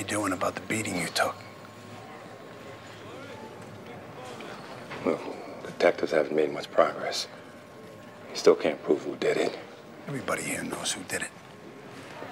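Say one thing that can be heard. A man speaks calmly and firmly up close.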